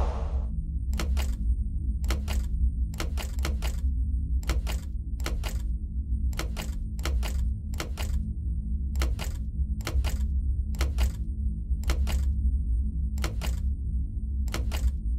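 Heavy plugs click and clunk into sockets in a steady series.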